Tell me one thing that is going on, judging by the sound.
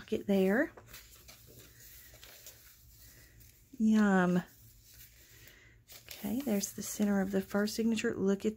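Paper pages rustle softly as they are turned.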